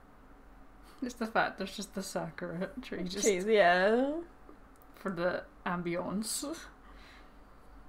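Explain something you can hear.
Two young women laugh together close by.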